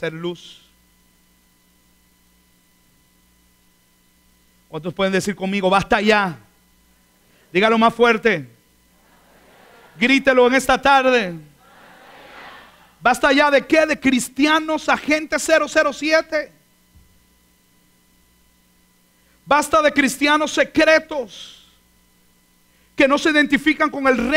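A man speaks with animation through a microphone, in pauses.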